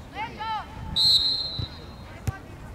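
A referee's whistle blows a sharp blast.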